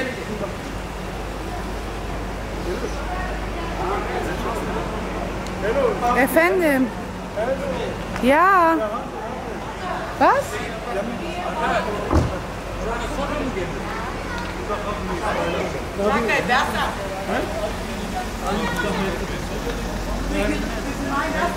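A woman talks and calls out cheerfully nearby outdoors.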